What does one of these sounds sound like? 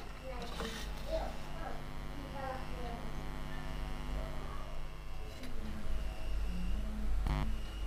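Metal tweezers tap and scrape against a circuit board.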